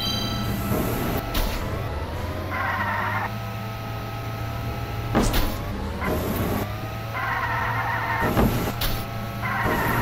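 A toy racing kart's engine hums steadily.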